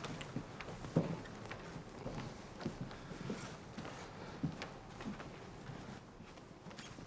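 Footsteps tread across a hard floor.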